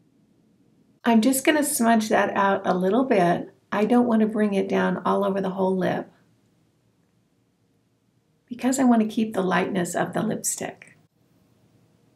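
A middle-aged woman speaks calmly and cheerfully into a close microphone.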